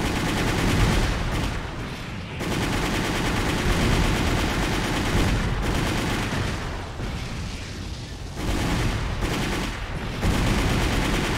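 Rocket thrusters roar loudly and surge in bursts.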